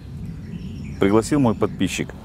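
A man talks briefly outdoors close to a microphone.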